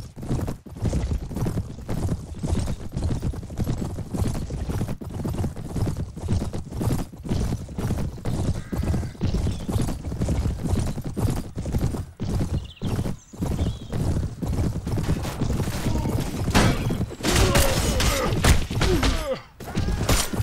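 Horse hooves pound steadily at a gallop.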